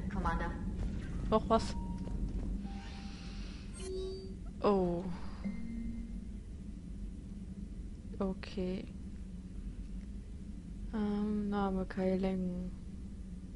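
Electronic interface tones chime as menus open.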